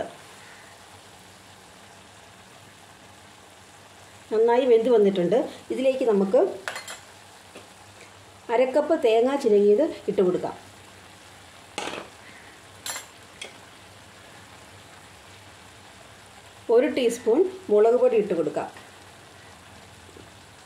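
A metal spoon scrapes and stirs in a pan.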